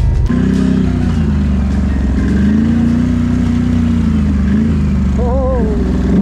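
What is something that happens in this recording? Another quad bike engine hums a little way ahead.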